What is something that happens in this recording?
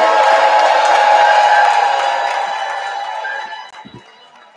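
A crowd cheers loudly in a large hall, then dies down.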